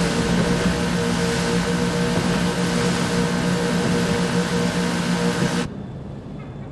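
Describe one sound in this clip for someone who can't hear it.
Water sprays and hisses behind a speeding boat.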